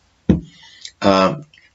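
A middle-aged man speaks close to a microphone.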